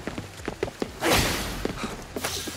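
A magical burst whooshes loudly.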